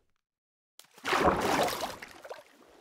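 Water splashes as something plunges in.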